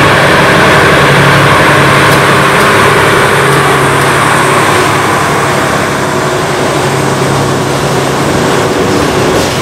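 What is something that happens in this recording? A locomotive engine hums loudly as it passes close by.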